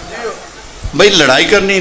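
A man speaks forcefully into a microphone over loudspeakers.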